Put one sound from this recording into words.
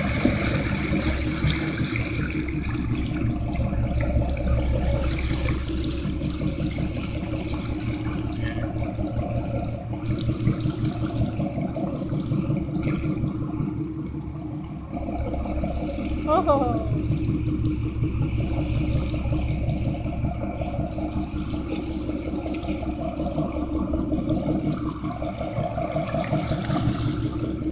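A boat engine drones steadily up close.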